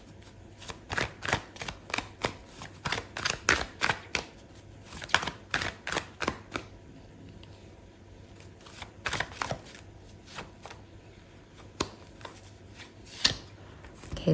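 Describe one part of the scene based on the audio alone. A deck of cards is shuffled by hand.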